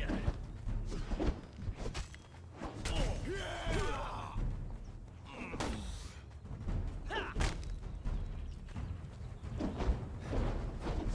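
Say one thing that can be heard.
Sword blows strike and clang in quick succession.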